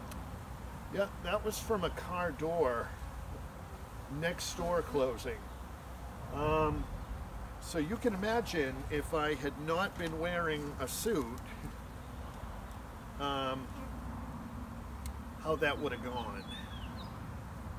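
A man speaks calmly, close by, in short bursts.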